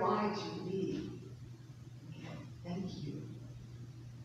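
A man speaks calmly in a large echoing hall.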